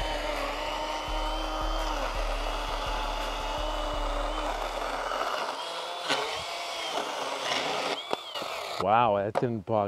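A battery chainsaw whines steadily as it cuts through a wooden post.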